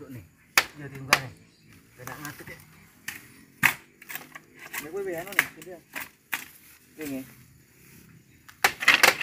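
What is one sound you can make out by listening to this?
Bamboo poles knock and clatter.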